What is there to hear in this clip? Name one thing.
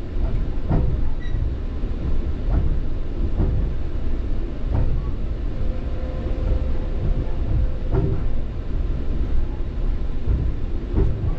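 A train rumbles along steadily from inside a carriage.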